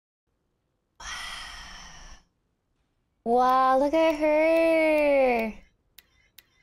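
A young woman speaks and exclaims in a sing-song voice close to a microphone.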